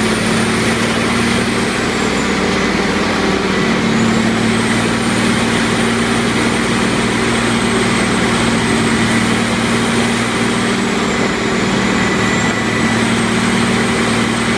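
A wheel loader's diesel engine rumbles steadily.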